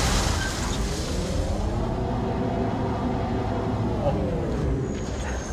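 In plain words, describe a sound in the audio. A hovering vehicle's engine hums and whines.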